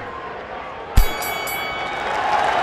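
A bell rings to end the round.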